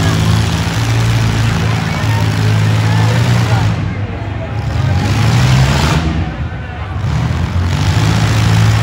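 Car engines roar loudly as they spin in a large echoing arena.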